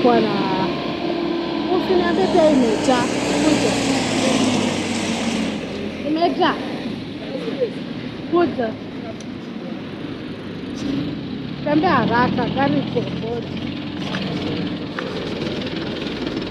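Traffic hums steadily on a busy street.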